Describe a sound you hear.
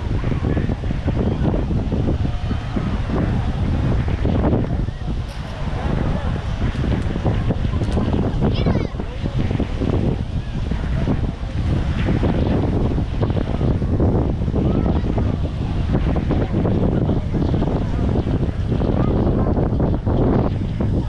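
Many people chatter in the distance.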